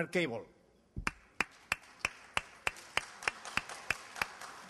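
A man claps his hands in a slow, steady rhythm.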